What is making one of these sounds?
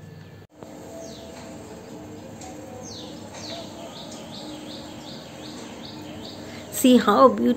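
Birds call overhead.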